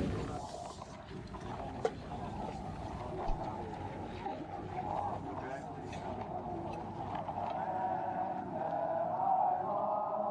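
A crowd sings together, heard through a small loudspeaker.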